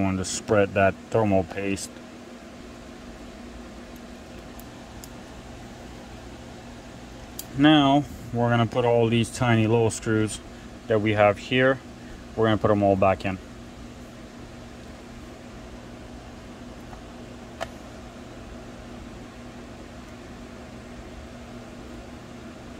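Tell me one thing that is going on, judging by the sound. A small screwdriver turns screws in a circuit board.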